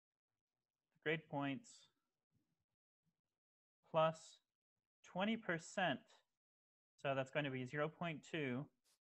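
A man speaks calmly through a microphone in short phrases.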